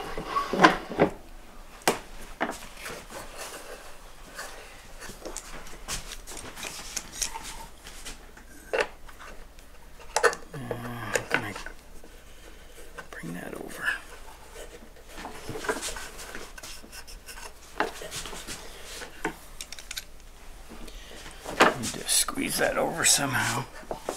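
A man talks calmly and steadily, close by.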